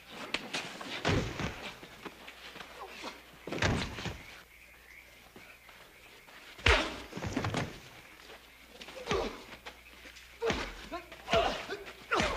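Fists thud hard against a body in a brawl.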